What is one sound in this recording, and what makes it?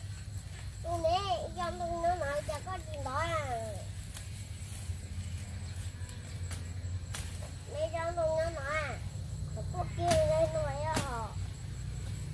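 A young child calls out loudly in a high, singsong voice nearby.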